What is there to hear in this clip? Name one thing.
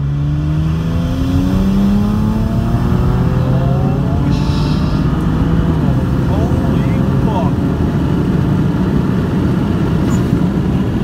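Tyre and road noise roars louder as the car speeds up.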